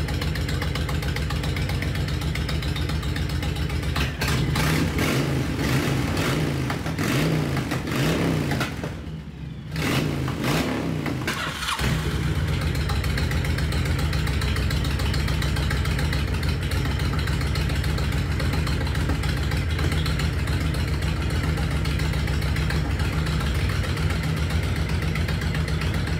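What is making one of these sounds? A motorcycle engine idles with a steady, throbbing rumble.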